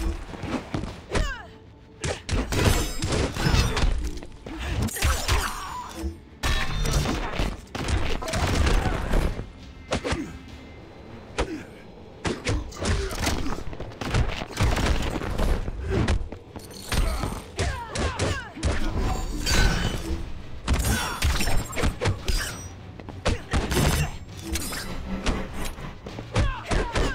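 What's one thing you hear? Fighters grunt and cry out as they strike.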